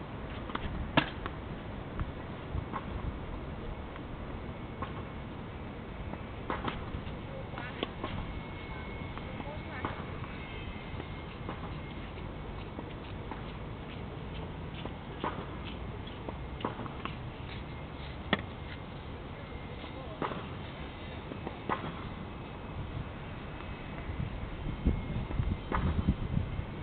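A tennis racket strikes a ball outdoors.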